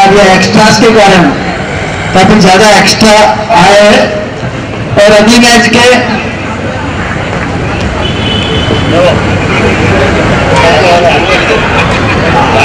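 A crowd murmurs and chatters in the open air.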